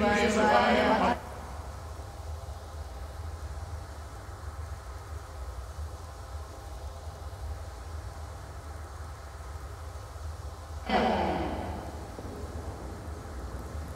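Magical energy crackles and hums steadily.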